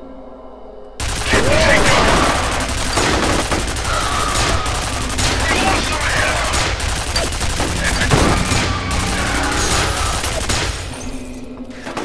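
A rifle fires in rapid bursts, with loud echoing shots.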